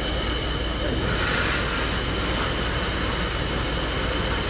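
Steam hisses loudly from a steam locomotive.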